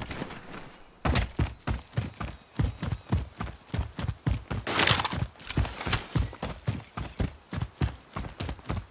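Footsteps crunch quickly and steadily over rough ground.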